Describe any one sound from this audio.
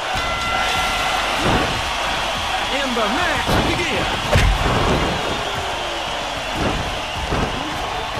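Heavy thuds of bodies hitting each other land several times.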